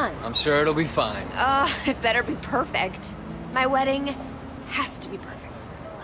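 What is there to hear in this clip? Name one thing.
A woman answers in a calm voice.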